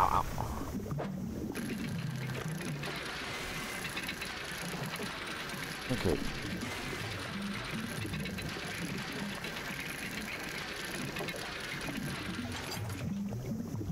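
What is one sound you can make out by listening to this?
Waves wash softly around a boat.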